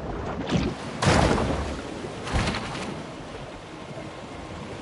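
Water splashes as a small animal swims through shallow water.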